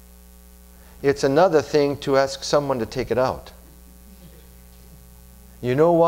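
A middle-aged man speaks calmly into a microphone, with pauses.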